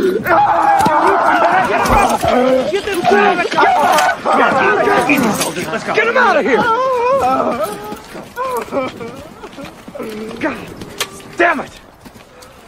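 Several men shout excitedly outdoors.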